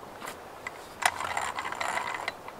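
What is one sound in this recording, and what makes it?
A cordless drill whirs as it bores into wood.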